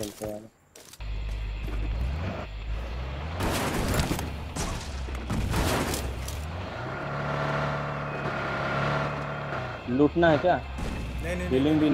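A car engine rumbles and revs as the car drives off.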